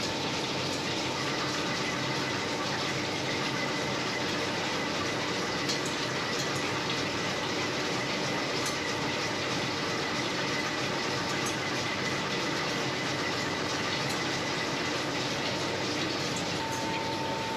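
A milling cutter grinds and squeals against metal.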